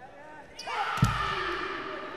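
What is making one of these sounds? A volleyball is struck hard with a sharp slap.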